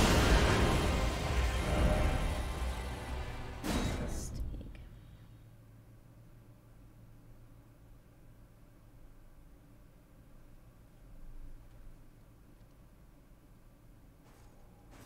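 A young woman speaks softly into a close microphone.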